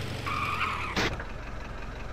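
A car door opens with a thud.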